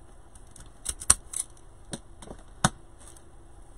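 A hand tool snaps and clicks a few times.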